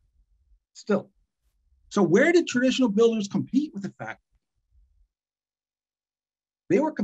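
An older man speaks calmly through a computer microphone, in short phrases with pauses.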